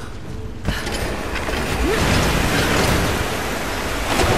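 Someone plunges into water with a heavy splash.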